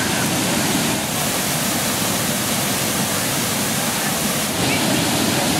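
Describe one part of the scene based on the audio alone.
Water crashes down and splashes hard nearby.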